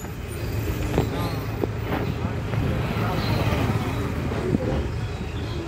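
A motorcycle engine passes close by.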